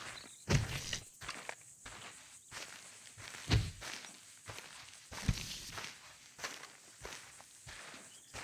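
Boots crunch on dry dirt with steady footsteps.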